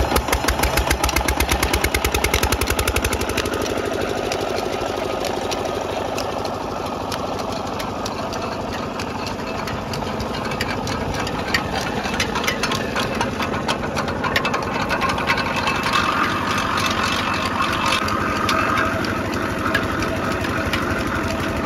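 A drive belt slaps and flaps as it runs.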